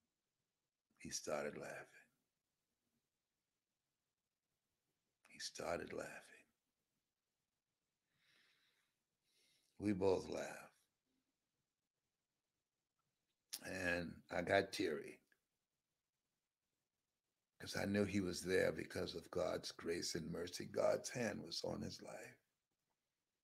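A man speaks slowly and warmly into a close microphone, in short phrases with long pauses.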